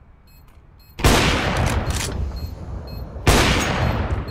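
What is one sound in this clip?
A sniper rifle fires loud, booming shots.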